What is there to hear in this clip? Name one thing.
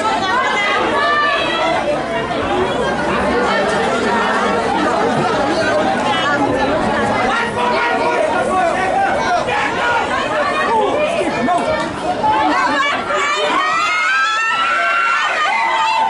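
Rugby players shout to each other across the field.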